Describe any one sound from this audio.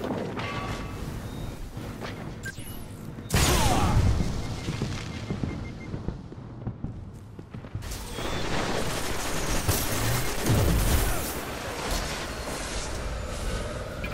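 Gunshots fire and echo.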